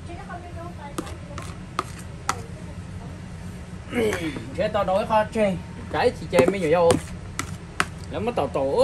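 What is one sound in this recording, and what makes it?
A plastic spoon clicks and scrapes against a plastic bowl.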